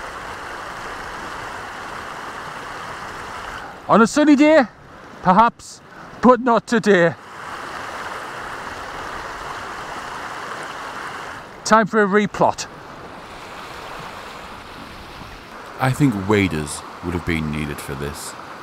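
A shallow stream babbles and splashes over stones.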